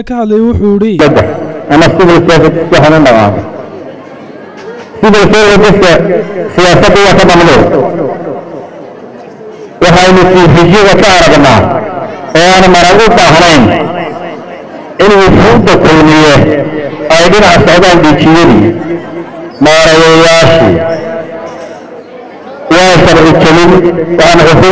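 A man speaks with animation into a microphone, heard loudly through a public address system in a room that echoes.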